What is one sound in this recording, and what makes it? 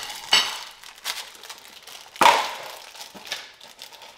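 Salad leaves rustle and crinkle in a glass bowl.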